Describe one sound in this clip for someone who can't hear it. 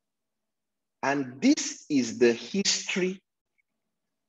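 A young man speaks calmly into a microphone over an online call.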